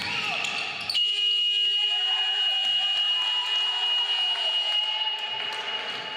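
A buzzer sounds steadily in a large echoing hall.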